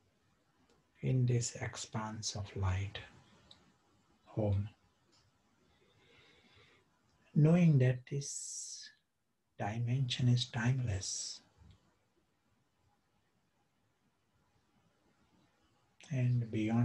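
A middle-aged man speaks calmly and slowly, close to a microphone, with long pauses.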